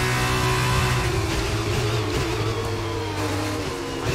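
A racing car engine drops in pitch as the car slows down.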